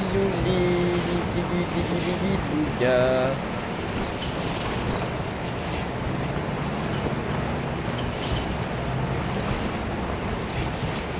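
Tyres roll over a rough dirt track.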